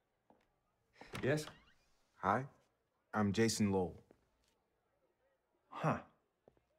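A man answers calmly.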